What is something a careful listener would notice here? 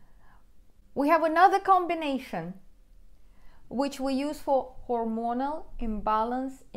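A middle-aged woman speaks calmly and explains, close to a microphone.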